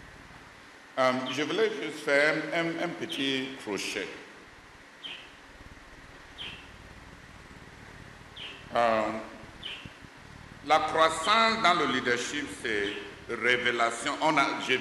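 A middle-aged man preaches with animation into a microphone, heard through loudspeakers.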